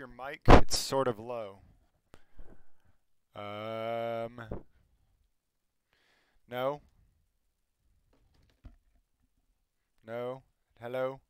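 A man speaks casually into a close microphone, with long pauses.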